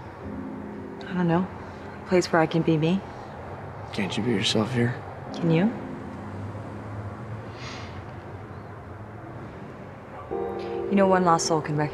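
A young woman speaks softly and emotionally nearby.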